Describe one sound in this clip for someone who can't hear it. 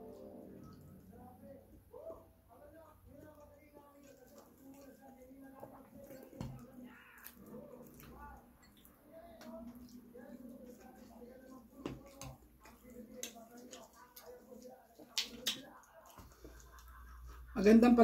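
A woman chews and smacks her lips while eating.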